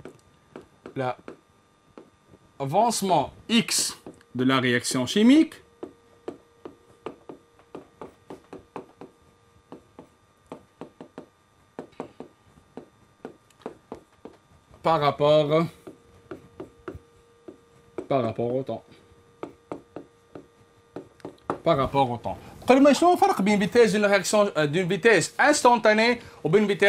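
A man speaks calmly and explains.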